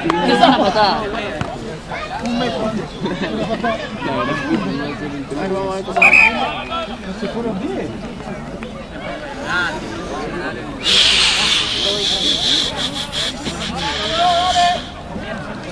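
Rugby players shout to each other across an open field.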